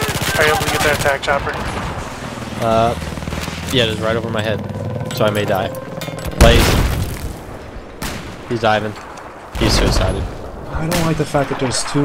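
Gunshots fire in bursts.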